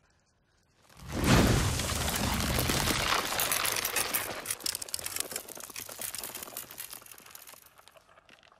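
Monsters roar and snarl.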